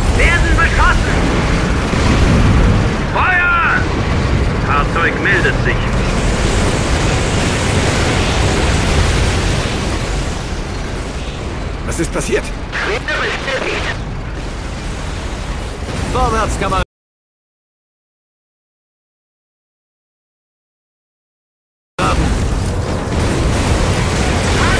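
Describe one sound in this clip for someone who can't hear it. Tank cannons fire with heavy booms.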